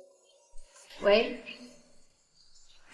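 A young woman speaks on a phone.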